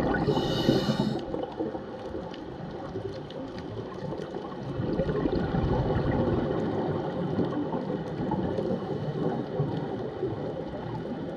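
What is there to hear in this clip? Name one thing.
Muffled water rumbles and swirls steadily underwater.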